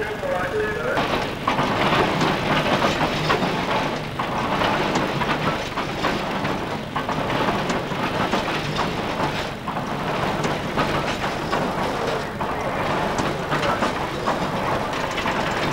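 A machine rattles and thumps loudly.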